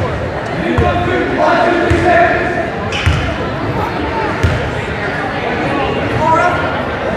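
A basketball bounces on a wooden court, echoing in a large hall.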